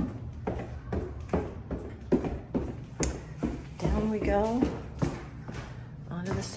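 Footsteps thud steadily down wooden stairs.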